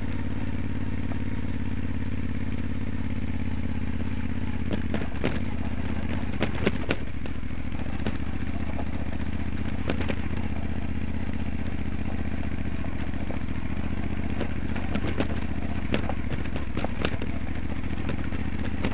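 A V-twin adventure motorcycle chugs uphill at low speed.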